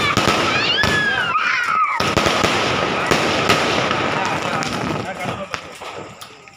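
Fireworks burst and crackle loudly overhead.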